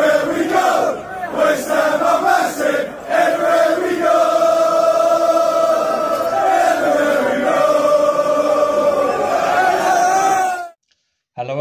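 A large crowd sings a chant together outdoors.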